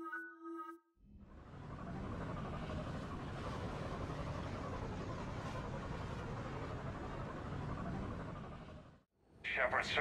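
A spacecraft's engines roar steadily.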